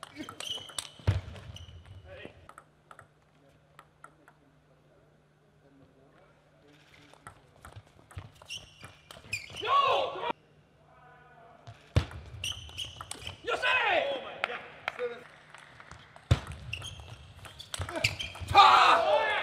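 A table tennis ball clicks back and forth off paddles and a table.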